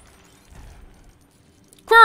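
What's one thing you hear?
Coins jingle and clink as they scatter.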